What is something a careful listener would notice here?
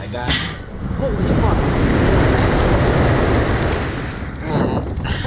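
Rushing wind roars past as the ride launches.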